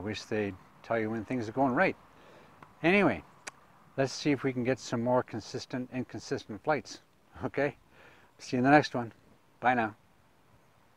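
An older man speaks calmly and clearly into a clip-on microphone.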